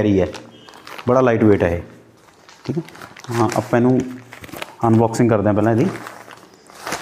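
A man speaks calmly into a clip-on microphone, close by.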